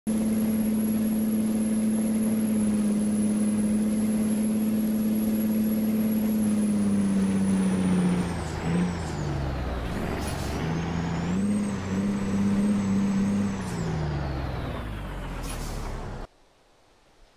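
A truck engine idles steadily, then its pitch drops and rises again.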